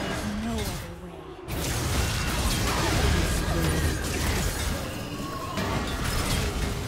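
Game combat effects whoosh and clash rapidly.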